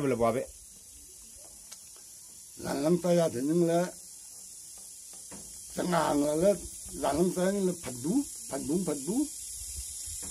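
An elderly man speaks close by in short bursts.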